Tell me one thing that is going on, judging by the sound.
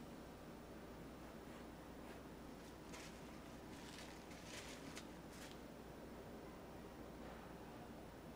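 A paintbrush softly brushes across a canvas.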